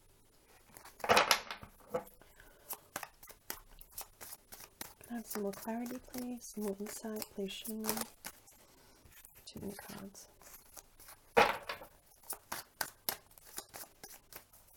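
Playing cards are shuffled with quick, crisp riffling clicks.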